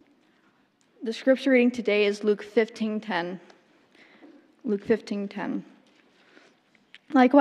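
A young woman speaks calmly into a microphone, amplified through loudspeakers.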